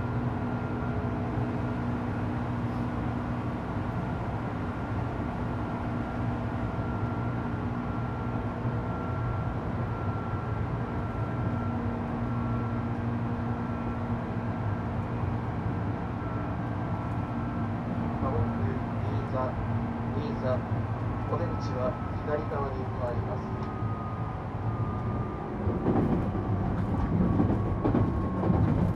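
An electric train's motors hum steadily with a few high whines.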